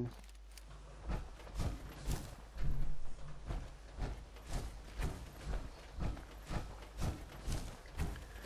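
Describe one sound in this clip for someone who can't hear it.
Heavy armoured footsteps thud and clank in a steady rhythm.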